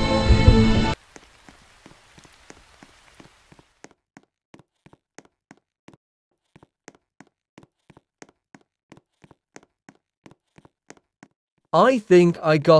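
Quick light footsteps tap on a hard surface.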